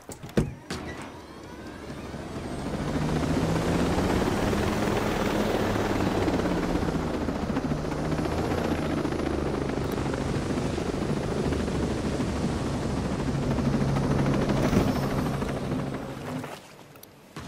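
A helicopter engine whines up and its rotor thuds loudly and steadily.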